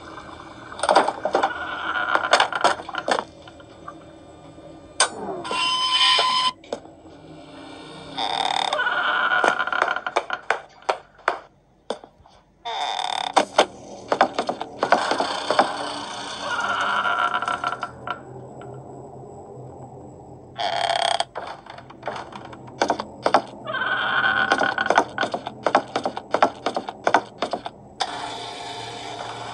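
Fingers tap on a tablet's glass.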